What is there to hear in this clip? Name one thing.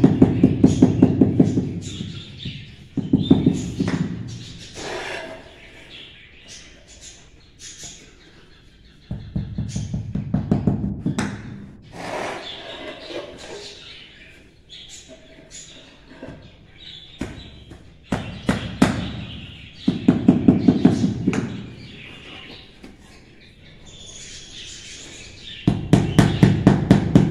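A rubber mallet taps rapidly on tiles.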